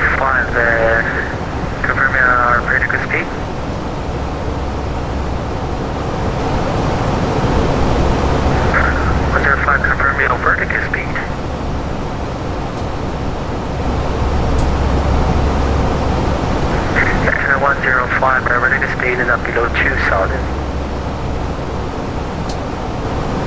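A steady low drone of aircraft engines hums throughout.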